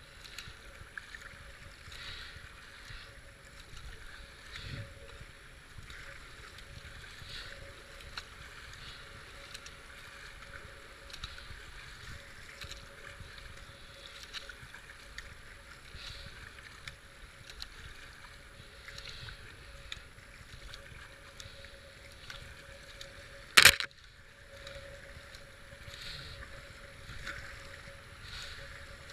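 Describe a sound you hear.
A paddle splashes rhythmically into the water.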